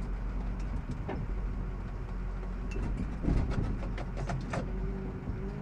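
Loose metal parts rattle and clank as a truck drives.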